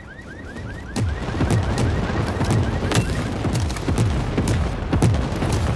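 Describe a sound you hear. Gunshots boom one after another, close by.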